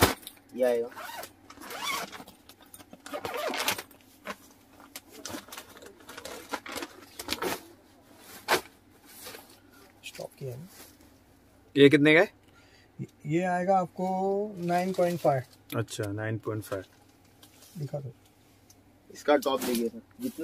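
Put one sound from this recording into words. Fabric and plastic wrapping rustle as they are handled.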